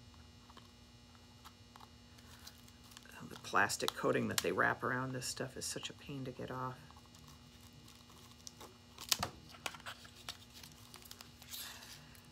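Scissors snip through ribbon.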